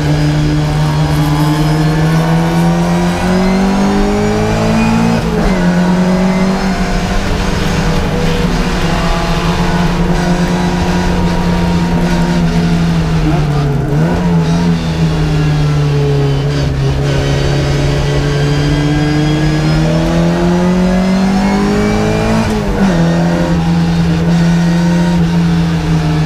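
A classic Mini race car's engine revs hard, heard from inside the cabin, rising and dropping through gear changes.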